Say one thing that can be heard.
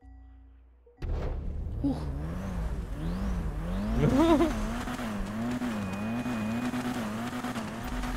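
A car engine idles and revs up and down.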